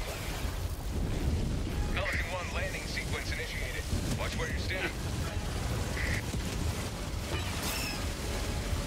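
Explosions rumble deep and steadily.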